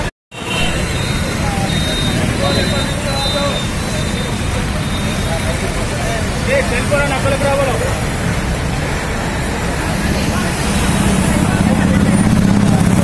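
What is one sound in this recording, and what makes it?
Traffic rumbles steadily on a street.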